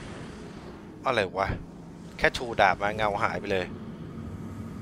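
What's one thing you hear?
A man talks close to a headset microphone.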